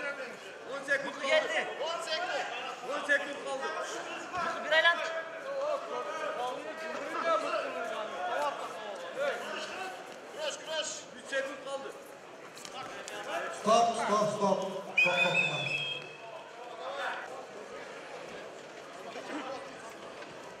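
A large crowd murmurs and shouts in a big echoing hall.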